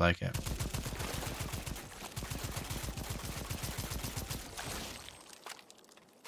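A rifle fires in a rapid, steady burst of shots.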